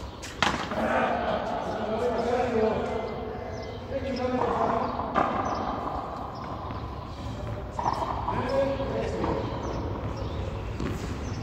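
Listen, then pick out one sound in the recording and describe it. A rubber ball smacks against a wall and bounces off a hard floor.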